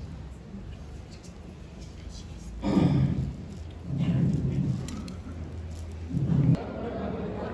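A crowd of men murmurs in a large echoing hall.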